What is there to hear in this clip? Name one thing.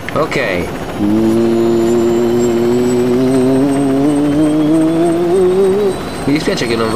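A helicopter engine whirs and rises in pitch as it takes off.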